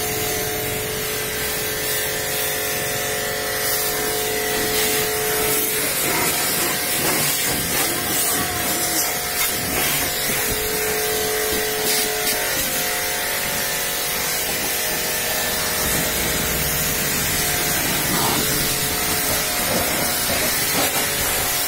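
Water spatters against metal and the ground.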